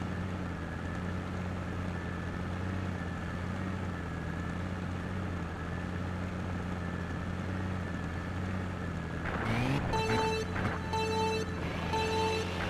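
Kart engines idle with a steady low hum.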